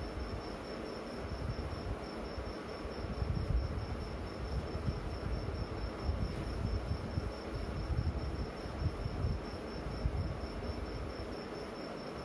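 A board eraser rubs across a whiteboard.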